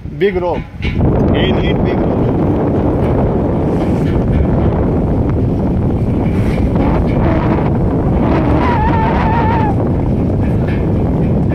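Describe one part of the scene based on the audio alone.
Water rushes and splashes against a boat hull in steady wind.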